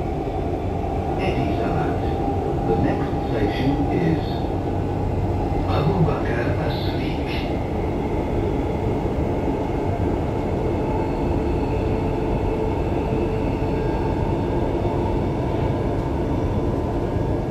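A train rumbles along steadily, heard from inside.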